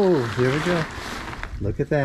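Cloth rustles as it is handled.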